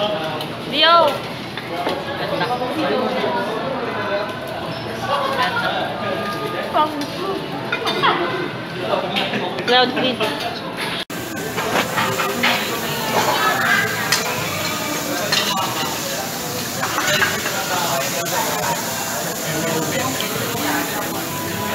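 A busy room murmurs with many voices chatting.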